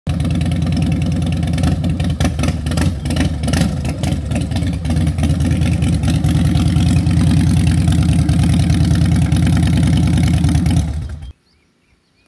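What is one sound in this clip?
A motorcycle engine rumbles loudly close by as it rides slowly past.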